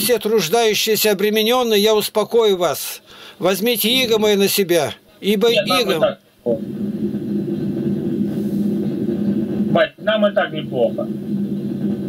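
An elderly man talks with animation over an online call.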